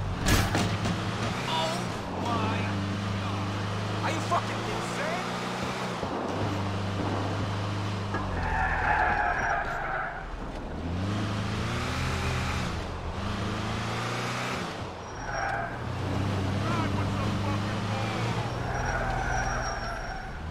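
A van engine hums and revs as it drives along.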